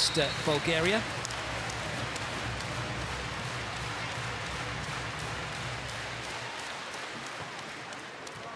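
A crowd murmurs steadily in a large hall.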